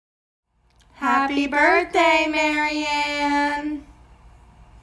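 A woman and a girl sing loudly together through a phone recording.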